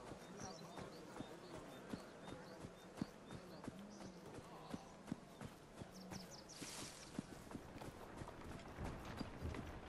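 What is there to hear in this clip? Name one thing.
Footsteps thud softly on a path at a steady pace.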